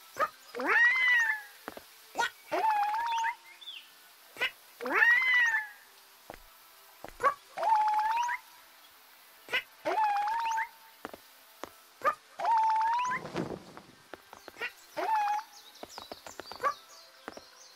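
A cartoon dinosaur character chirps in short, high, bouncy calls again and again.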